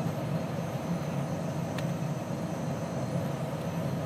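Fingers tap on a keyboard.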